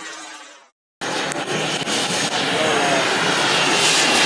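A model jet engine whines steadily at idle close by.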